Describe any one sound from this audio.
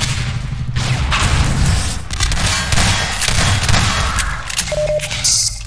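Rapid gunfire rattles with bullets ricocheting off metal.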